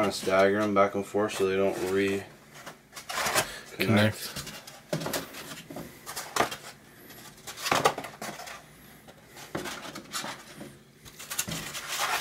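Cardboard egg trays rustle and knock against each other as they are stacked.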